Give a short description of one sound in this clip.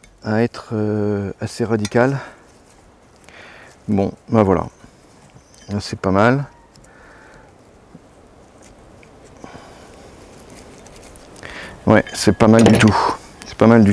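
A man talks calmly and closely into a clip-on microphone.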